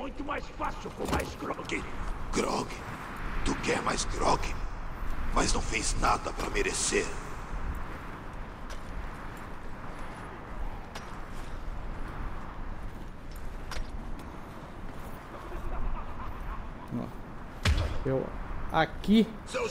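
A middle-aged man talks casually into a headset microphone.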